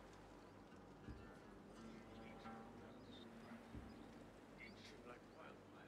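A man speaks quietly and calmly into a close microphone.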